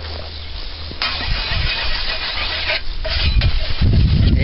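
A whetstone scrapes rapidly along a scythe blade.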